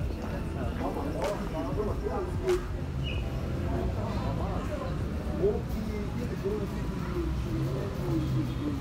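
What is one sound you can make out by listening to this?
A crowd of men and women talk loudly outdoors nearby.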